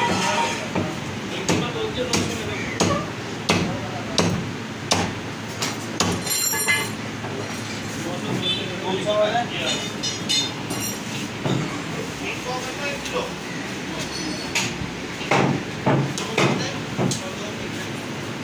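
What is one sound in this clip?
A cleaver chops through meat onto a wooden block with repeated thuds.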